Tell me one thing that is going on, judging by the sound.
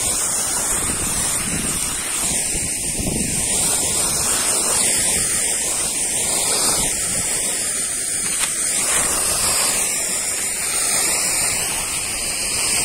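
A motor sprayer roars and hisses steadily as it blows out a fine mist.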